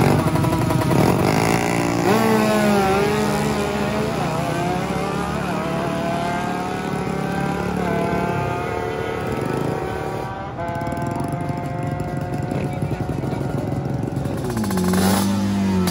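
Several motorcycle engines idle and rev nearby.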